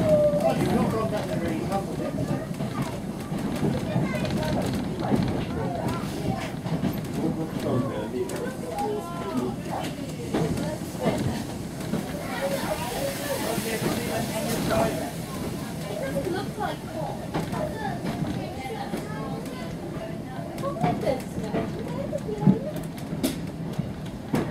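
Wheels clatter over rail joints.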